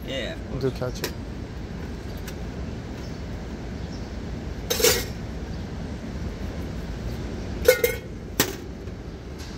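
Metal tongs clack against a metal tray.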